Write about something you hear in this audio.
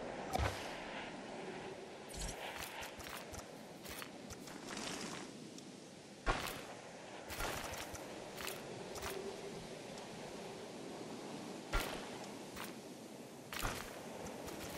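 Short sharp clicks sound as paths snap into place.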